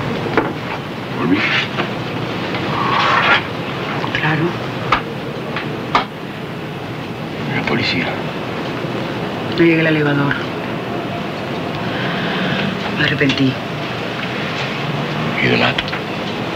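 A man speaks tensely close by.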